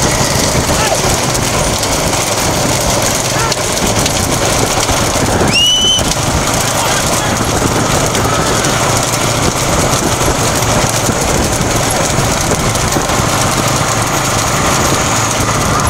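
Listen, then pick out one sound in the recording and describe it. Hooves clatter on a paved road.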